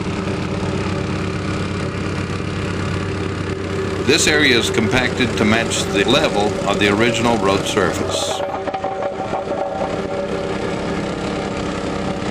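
A plate compactor rumbles and vibrates on fresh asphalt.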